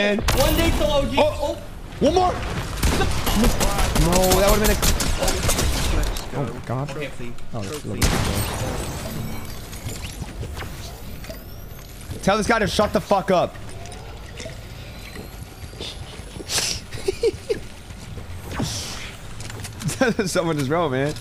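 A young man talks animatedly into a microphone.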